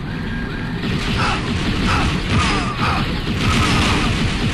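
Blaster bolts fire in quick bursts.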